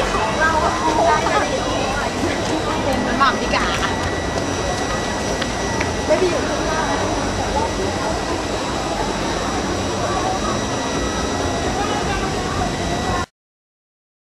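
Young women chatter and talk close by.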